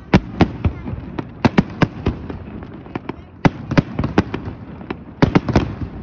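Fireworks burst with sharp booms and bangs echoing over water in the distance.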